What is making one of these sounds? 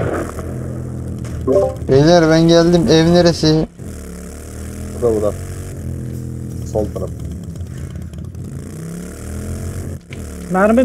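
A motorcycle engine drones steadily and revs up and down.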